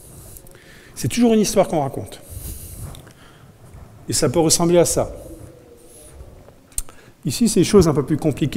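A man speaks to an audience in a large room, with pauses between phrases.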